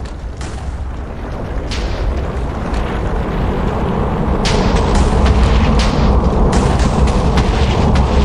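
Explosions boom and rumble over and over, with debris crackling.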